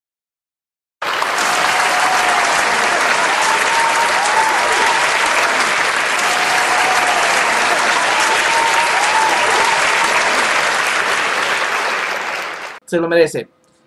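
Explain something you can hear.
A large crowd applauds loudly in a hall.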